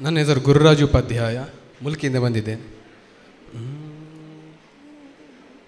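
A young man sings into a microphone through loudspeakers.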